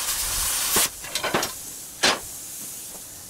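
A cut steel bar clangs onto the ground.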